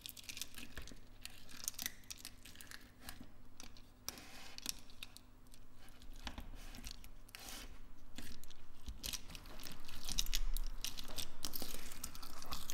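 Plastic beads click and rattle against each other in a jar.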